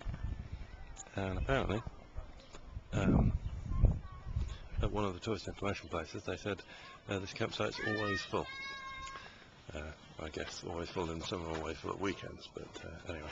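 A middle-aged man speaks calmly close to the microphone.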